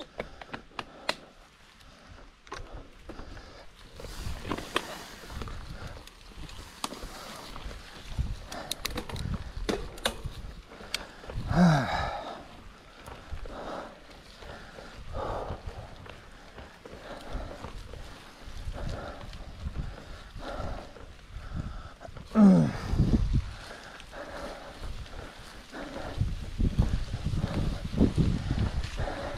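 Bicycle tyres roll and bump over a grassy track.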